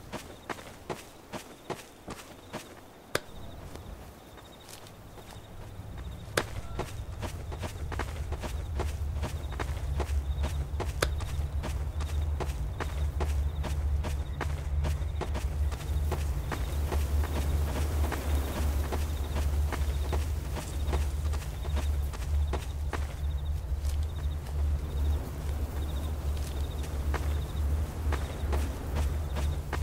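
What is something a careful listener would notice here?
Footsteps tread steadily on dirt.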